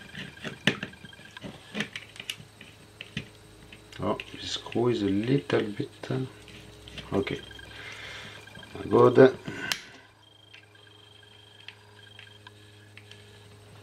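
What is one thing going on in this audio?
A small screwdriver clicks and scrapes against hard plastic.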